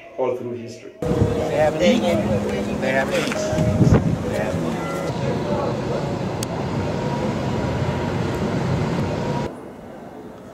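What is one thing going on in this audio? A crowd of people talk outdoors.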